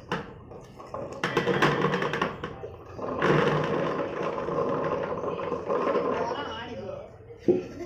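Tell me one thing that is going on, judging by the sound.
Water pours from a metal bowl into a pot.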